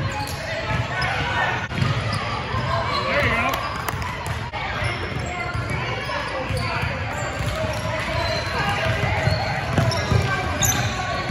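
Sneakers squeak on a hardwood floor in a large echoing gym.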